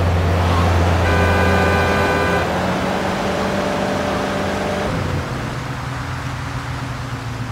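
A car engine hums steadily as a car drives along.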